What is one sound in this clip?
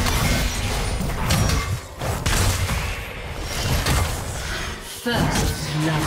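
Weapons clash in a hectic fight.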